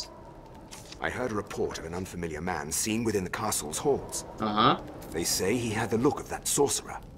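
A man's voice in the game speaks calmly.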